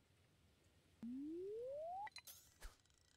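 A rising tone climbs steadily.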